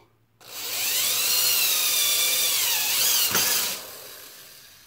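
A power tool whines loudly as it cuts into wood, then winds down.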